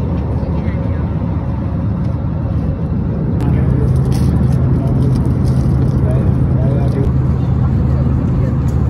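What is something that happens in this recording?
A jet engine hums steadily inside an aircraft cabin.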